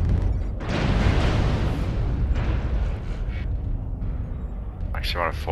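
Heavy metal footsteps thud.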